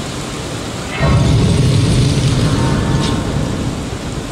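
A bright magical chime rings out as a glowing light flares.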